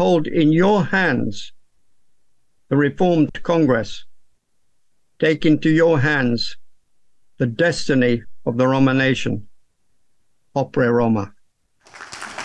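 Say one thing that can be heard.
An elderly man speaks calmly and haltingly over an online call.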